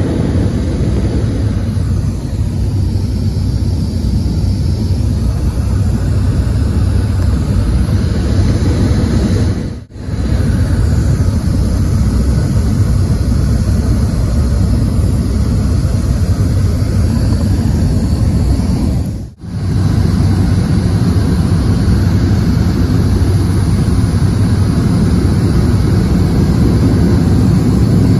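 An aircraft engine roars steadily, heard from inside the cabin.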